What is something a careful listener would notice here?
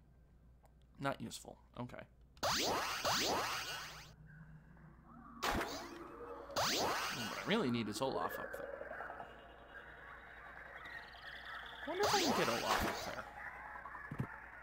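Video game sound effects chime and whoosh.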